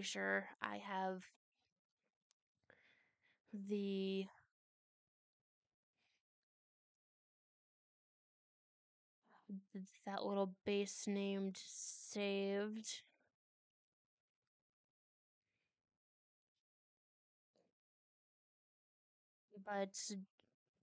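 A young woman speaks with animation, close to a desk microphone.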